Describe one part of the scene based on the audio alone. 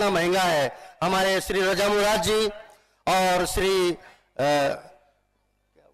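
An elderly man speaks forcefully into a microphone over loudspeakers.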